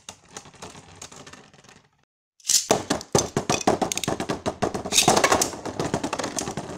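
Spinning tops clatter and scrape against a plastic bowl.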